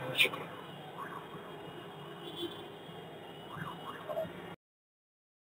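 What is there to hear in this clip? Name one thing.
A man sings through a microphone.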